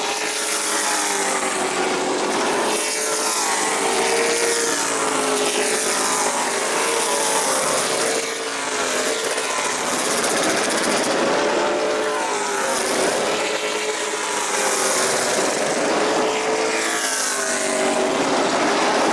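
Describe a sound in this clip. Race car engines roar loudly as a pack of cars speeds past.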